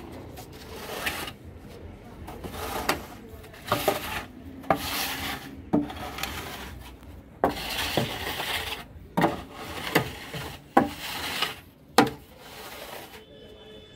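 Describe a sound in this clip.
A metal pipe scrapes and taps against a concrete floor.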